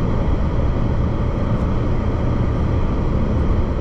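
A pickup truck passes close by.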